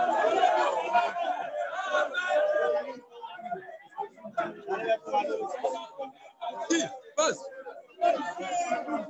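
A crowd of men chants loudly outdoors.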